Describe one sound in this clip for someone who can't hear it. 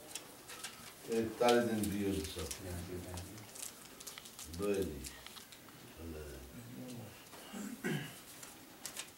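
Several men talk quietly nearby.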